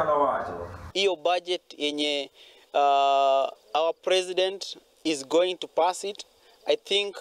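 A man speaks with animation into a microphone outdoors.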